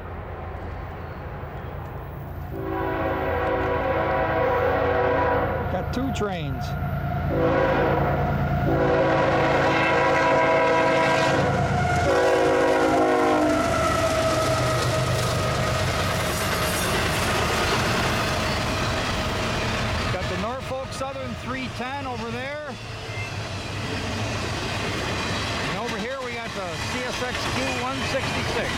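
A freight train rumbles and clatters along the tracks.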